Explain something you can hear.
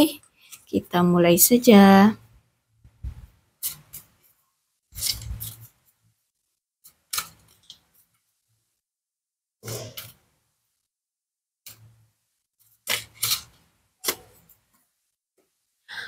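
Playing cards rustle and snap softly as they are shuffled by hand.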